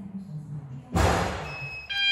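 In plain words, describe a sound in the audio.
A key clicks into a fire alarm call point.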